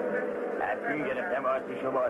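An elderly man cries out in a cartoon voice.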